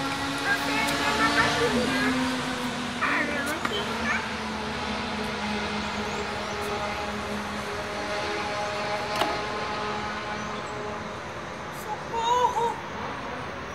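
A young girl speaks playfully close by.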